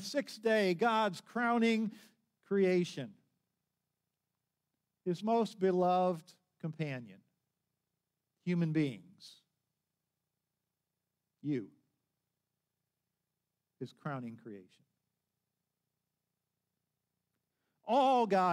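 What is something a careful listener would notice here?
An older man speaks calmly through a microphone, in short phrases with pauses.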